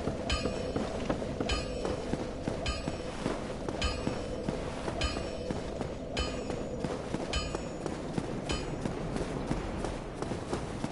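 Armored footsteps clank rhythmically on stone as a knight runs.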